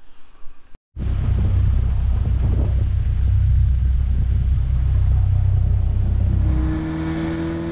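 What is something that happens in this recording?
Several race car engines idle with a deep, throbbing rumble.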